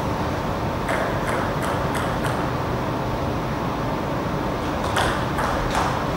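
A table tennis ball bounces and clicks sharply on a table and paddles in an echoing hall.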